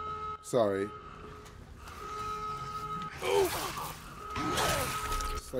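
A young man shouts and exclaims excitedly into a microphone.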